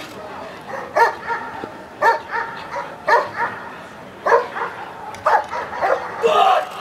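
A large dog barks loudly in short, regular bursts outdoors.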